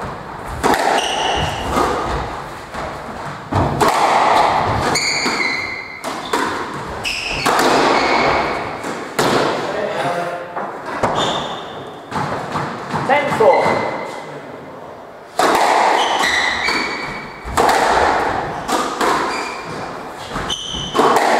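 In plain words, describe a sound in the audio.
A squash ball smacks hard against the walls in a fast rally, echoing around the court.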